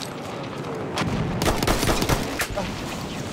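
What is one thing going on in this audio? A loud explosion booms nearby and rumbles.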